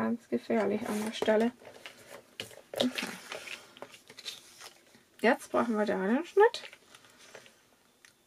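Paper rustles and slides across a hard surface.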